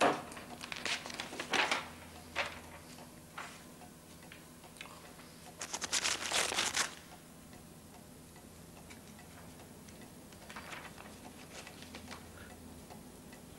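Paper rustles as sheets are shuffled and turned.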